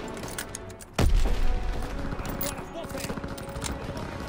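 A rifle clicks and rattles as it is reloaded.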